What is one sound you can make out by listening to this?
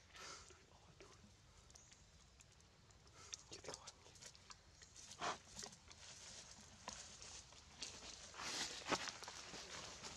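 Dry leaves rustle and crackle as monkeys scramble over them.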